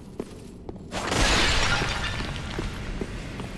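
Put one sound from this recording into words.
Objects crash and break with a loud burst.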